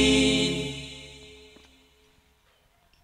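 A group of men sing together through loudspeakers, and the singing fades away.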